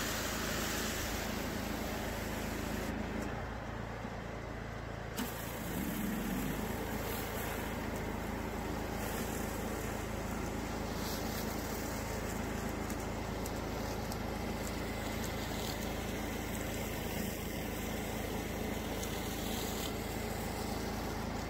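A pressure washer's engine hums steadily nearby.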